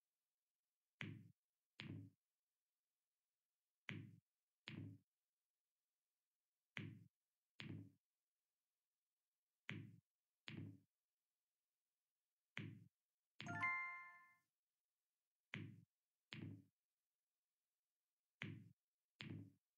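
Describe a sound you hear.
Short soft pops sound in pairs as game balls are lifted and dropped.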